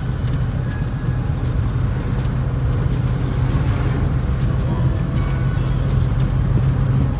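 Traffic rumbles along a busy street outside.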